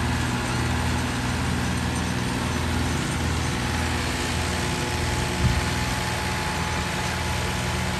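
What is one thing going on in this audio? A tiller scrapes and churns through dry soil.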